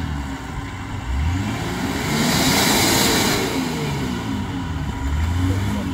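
An off-road vehicle's engine revs hard and rises and falls in pitch.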